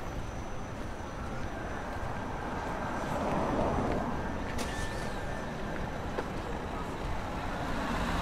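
A car engine rumbles past close by.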